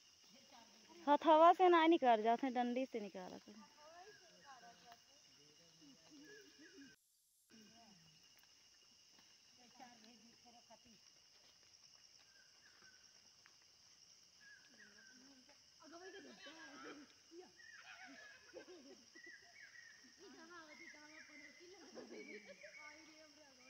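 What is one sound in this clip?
Women talk and call to each other at a distance outdoors.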